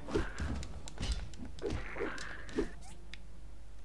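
Game combat effects whoosh and thud.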